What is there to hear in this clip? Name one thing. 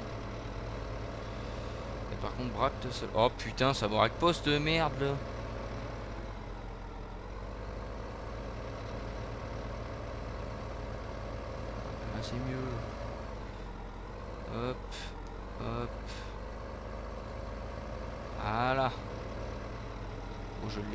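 A tractor engine drones steadily at idle.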